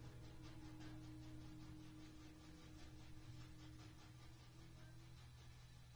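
Drums and cymbals keep a steady beat.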